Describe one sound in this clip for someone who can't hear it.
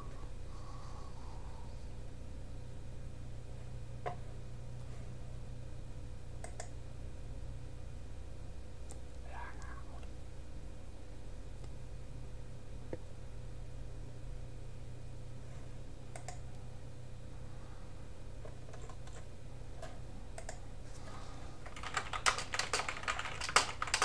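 A man speaks close to a microphone, quietly at first and then with more energy.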